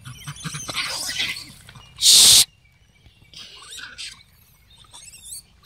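Monkeys chatter and squeak close by.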